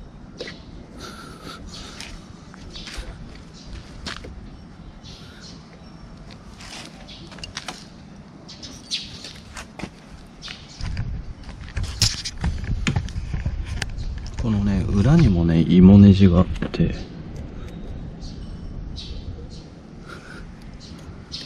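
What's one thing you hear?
A plastic mirror clicks and creaks as hands tilt and turn it.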